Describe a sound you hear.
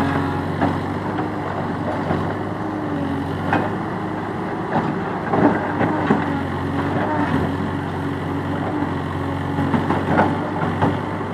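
A diesel engine of a backhoe loader rumbles steadily nearby.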